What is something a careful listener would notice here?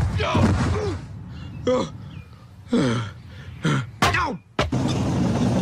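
A man yells and groans in pain.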